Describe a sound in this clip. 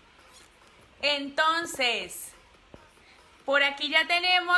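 A young woman speaks cheerfully and close to the microphone.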